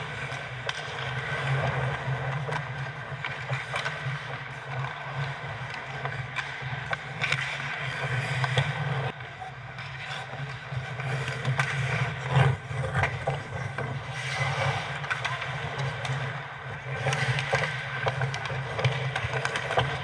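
Skates scrape and carve across the ice in a large echoing arena.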